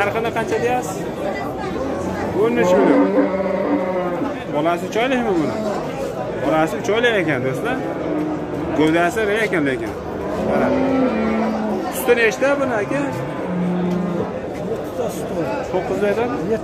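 Several men talk loudly and overlap nearby.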